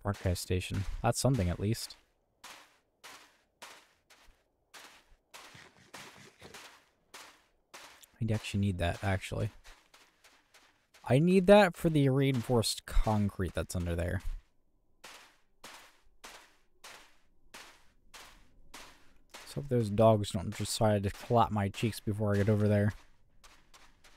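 Footsteps crunch steadily on soft ground.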